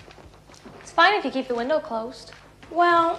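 A young woman speaks with excitement nearby.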